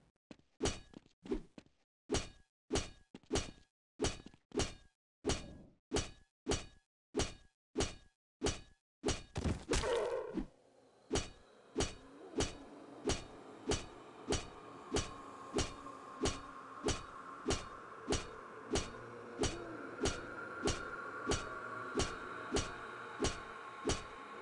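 An axe strikes again and again in a quick, steady rhythm.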